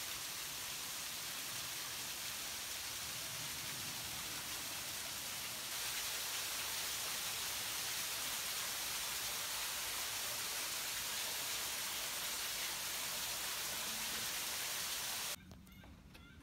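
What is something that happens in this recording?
A small waterfall trickles and splashes steadily over rocks.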